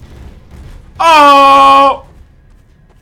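A young man shouts loudly into a microphone.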